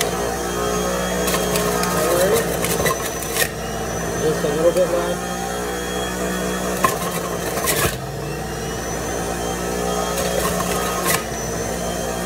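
A plastic pusher knocks as produce is pressed into a juicer.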